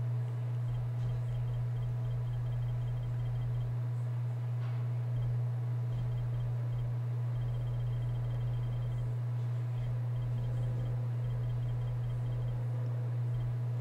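Soft interface ticks click quickly as a menu list scrolls.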